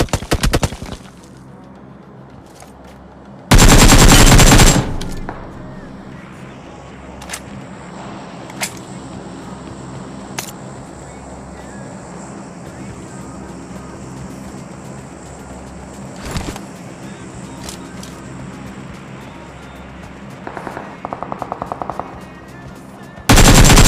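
Rapid gunfire bursts out in short, loud volleys.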